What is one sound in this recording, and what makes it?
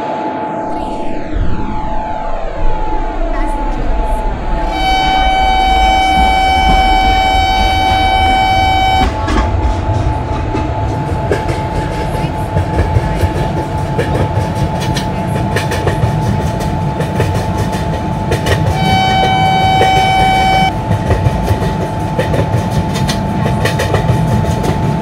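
An electric locomotive hums and rumbles as it gathers speed.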